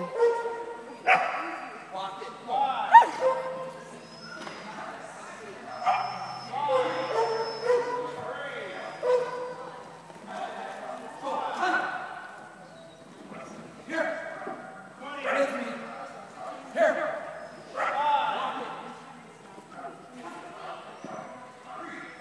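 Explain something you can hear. A woman calls out commands to a dog with animation, echoing in a large hall.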